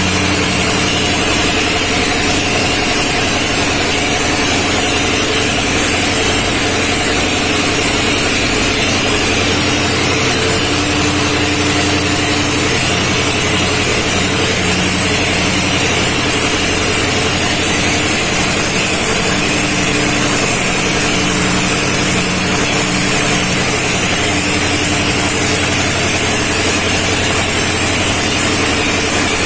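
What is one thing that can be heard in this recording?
Water gushes and splashes from a pipe.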